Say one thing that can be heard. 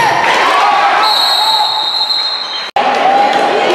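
A buzzer sounds with a steady, high tone.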